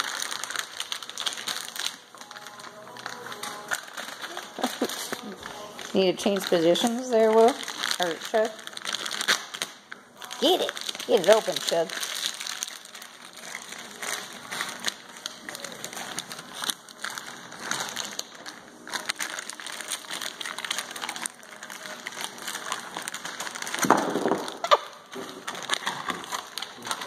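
Dogs chew and crinkle plastic toys.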